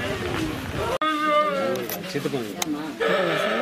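A woman sobs and wails.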